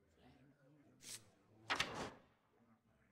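A page flips with a soft whoosh.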